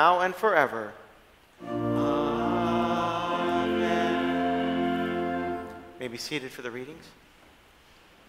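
A man chants in a sung voice, heard through a microphone in an echoing hall.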